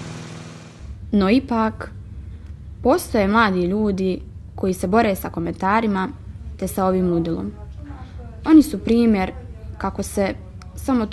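A young woman speaks calmly and quietly nearby.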